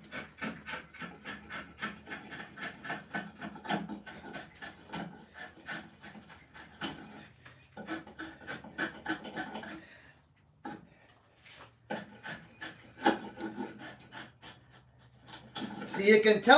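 A draw knife scrapes and shaves wood in quick strokes.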